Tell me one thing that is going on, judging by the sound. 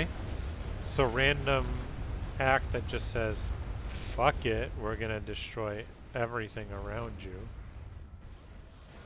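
Explosions boom and rumble heavily.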